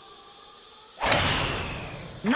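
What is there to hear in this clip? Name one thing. A golf club strikes a ball with a sharp whack.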